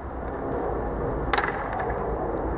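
A wooden chair knocks down onto a hard roof.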